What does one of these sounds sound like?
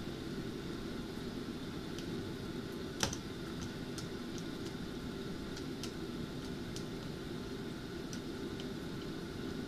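A metal ladle clinks against a pot.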